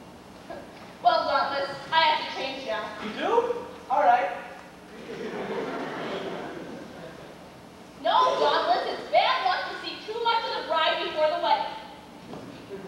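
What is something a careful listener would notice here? A young man speaks with animation on a stage, heard from a distance in a hall.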